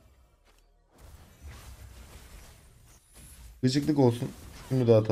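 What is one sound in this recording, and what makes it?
Magic blasts whoosh and crackle in a video game battle.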